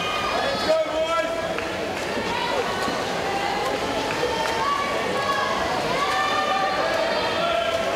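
Swimmers splash through water.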